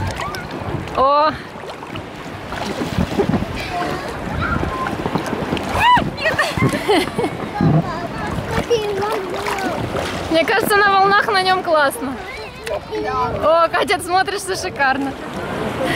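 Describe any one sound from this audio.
A young woman talks and laughs with animation.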